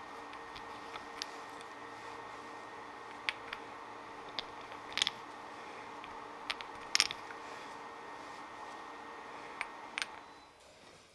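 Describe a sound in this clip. Brass parts click and clink softly as hands handle them.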